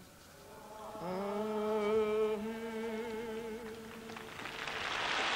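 An elderly man chants a blessing into a microphone in a slow, sung voice.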